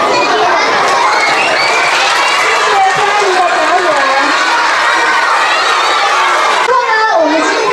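A young girl sings.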